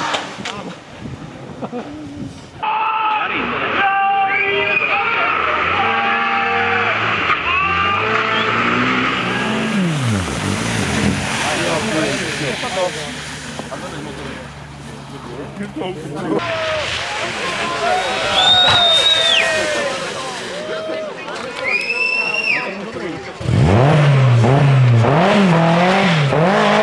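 Rally car engines rev hard and roar as cars race past close by.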